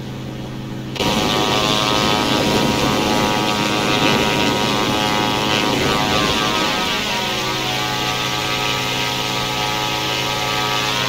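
A propeller engine roars loudly and evenly.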